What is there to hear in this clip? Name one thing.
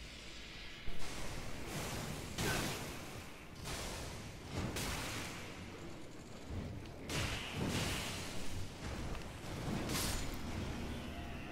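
Sword blows clash and swish in bursts.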